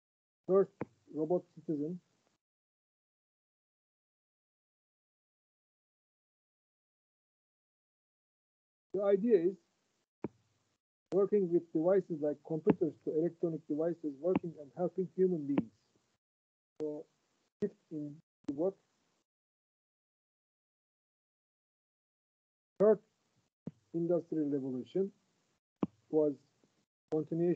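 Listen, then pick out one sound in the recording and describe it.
A man speaks calmly through an online call, pausing often.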